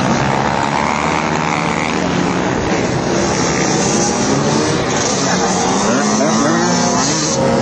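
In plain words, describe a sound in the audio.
Small motorbike engines buzz and rev nearby.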